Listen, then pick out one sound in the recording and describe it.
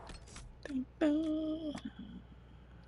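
A game menu gives a short chiming tone.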